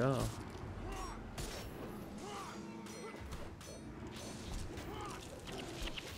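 Magic spells crackle and weapons clash in a fight.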